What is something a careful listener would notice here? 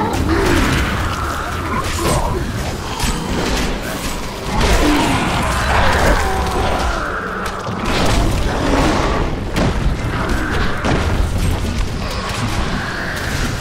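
Spells crackle and burst in fiery blasts during a fight.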